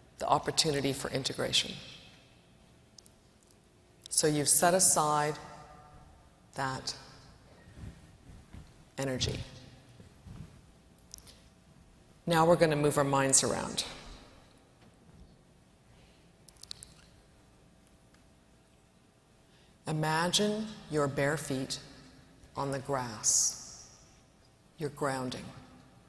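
A woman speaks slowly and calmly through a microphone, with long pauses.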